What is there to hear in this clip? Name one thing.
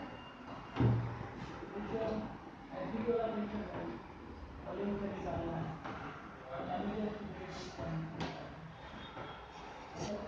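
A duster rubs across a whiteboard.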